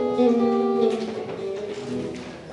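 A guitar plays a few ringing notes and fades out.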